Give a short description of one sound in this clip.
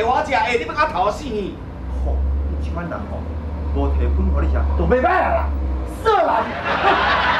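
An elderly man scolds loudly and animatedly up close.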